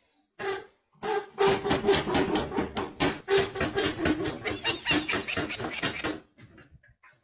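A woman laughs loudly close by.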